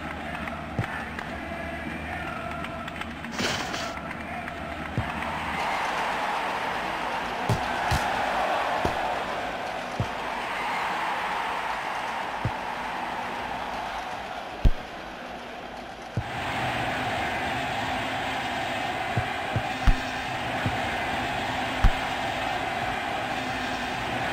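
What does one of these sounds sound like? A stadium crowd roars and cheers.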